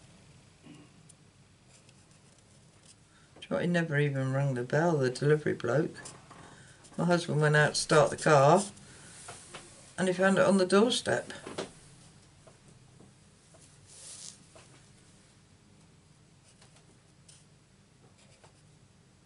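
A marker squeaks softly across paper.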